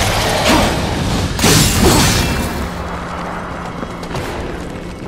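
Heavy armoured footsteps thud on stone.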